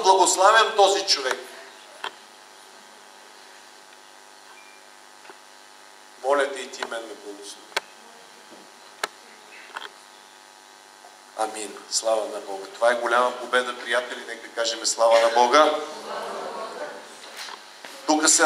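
A middle-aged man speaks with animation through a microphone, with pauses between phrases.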